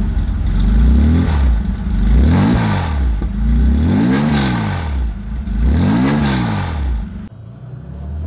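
A sports car engine revs up sharply and falls back, several times in a row.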